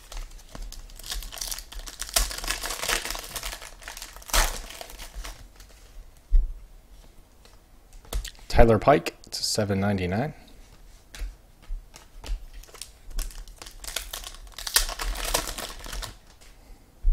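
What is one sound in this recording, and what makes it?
Plastic wrappers crinkle and tear as hands open card packs.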